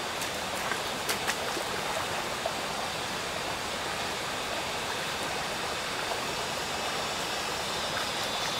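Legs wade and splash through shallow water.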